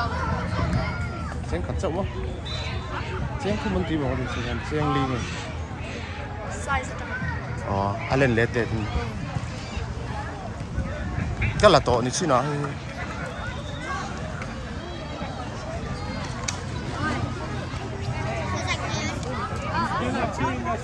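A crowd of children and adults chatter outdoors.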